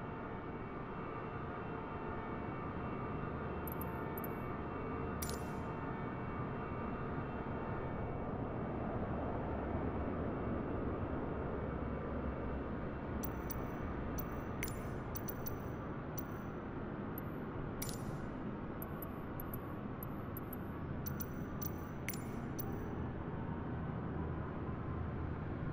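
A parked airliner's jet engines hum steadily.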